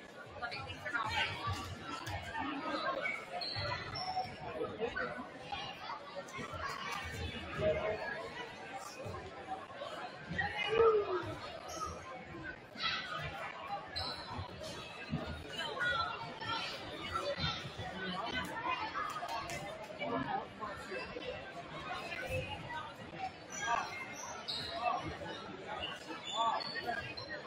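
A crowd of people chatter and cheer loudly in a large echoing gym.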